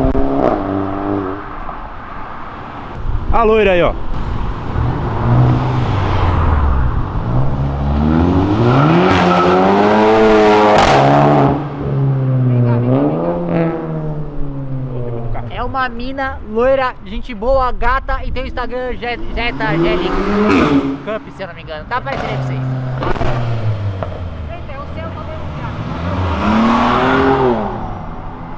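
A car engine revs loudly and roars past.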